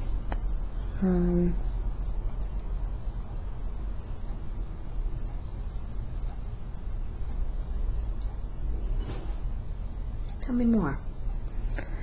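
A woman groans softly in pain close by.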